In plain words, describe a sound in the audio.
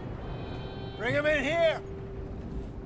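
An older man speaks a short line in a low, commanding voice.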